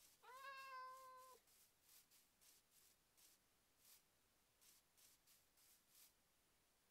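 Footsteps crunch softly on grass at a steady walking pace.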